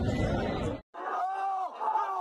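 A man shouts loudly up close.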